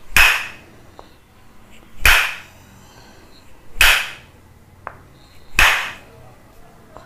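A wooden block strikes sharply with a loud knock, every couple of seconds.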